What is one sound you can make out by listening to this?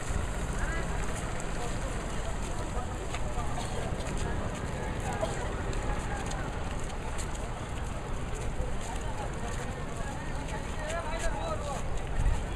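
Footsteps shuffle on a paved road.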